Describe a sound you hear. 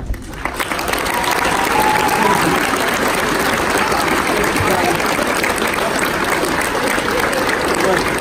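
A crowd claps hands rapidly.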